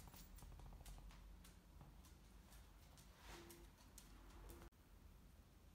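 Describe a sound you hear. A dog's claws click on a hard floor.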